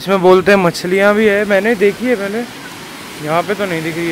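Water rushes steadily nearby.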